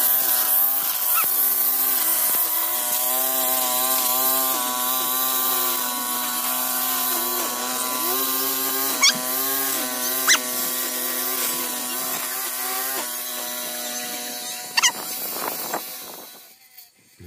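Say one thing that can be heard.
A petrol string trimmer engine whines steadily, close by, its pitch rising and dipping.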